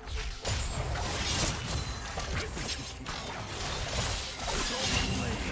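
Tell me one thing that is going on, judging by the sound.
Magic blasts and sword hits crackle and clash in a fast game battle.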